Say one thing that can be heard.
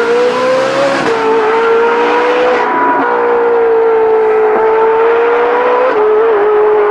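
A sports car engine shifts gears with brief dips in its roar.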